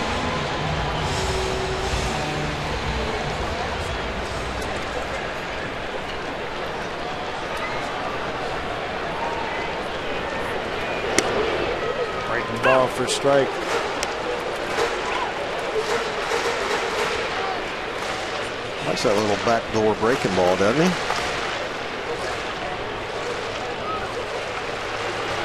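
A large stadium crowd murmurs steadily all around.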